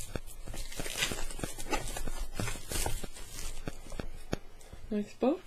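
Plastic packaging crinkles and rustles in hands.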